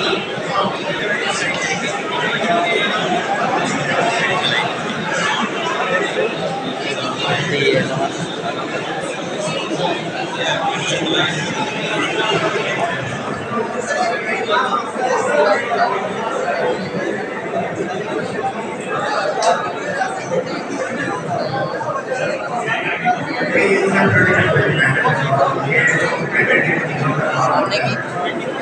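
A crowd of men and women chatter all around in an echoing hall.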